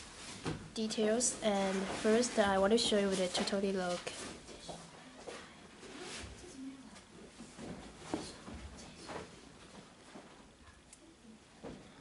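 Sneakers thump softly as they are set down.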